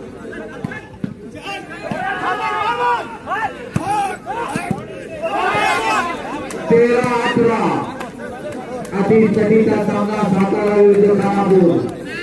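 A crowd of men cheers and shouts loudly outdoors.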